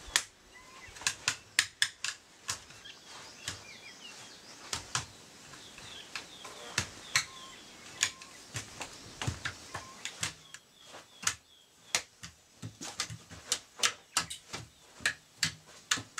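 Arms and hands strike a wooden training post with sharp, quick knocks.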